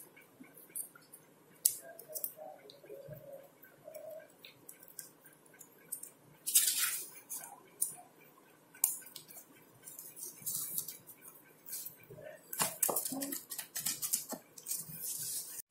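Small metal parts click and scrape between fingers.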